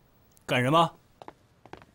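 A man asks a short question sharply.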